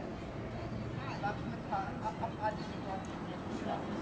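A group of adults talk together at a distance outdoors.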